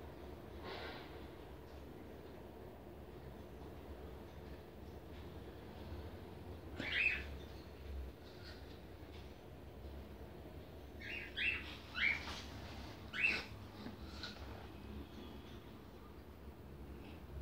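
A paintbrush brushes softly against fabric.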